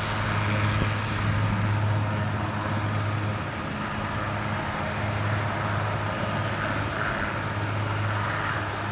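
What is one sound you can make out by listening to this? A helicopter's rotor thumps steadily nearby.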